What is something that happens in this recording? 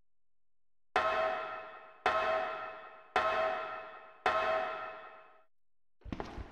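Footsteps clang on the rungs of a metal ladder.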